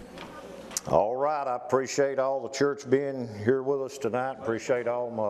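A middle-aged man speaks loudly and with emphasis through a microphone.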